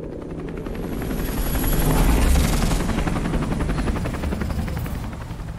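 A helicopter rumbles overhead.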